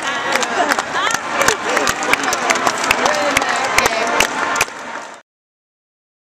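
A group of young women cheer and shout excitedly close by.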